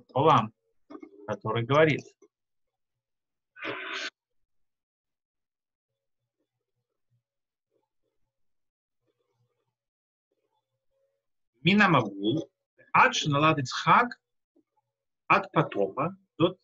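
A middle-aged man speaks calmly through an online call, pausing often.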